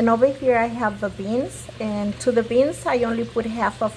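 Water bubbles at a rolling boil in a pot.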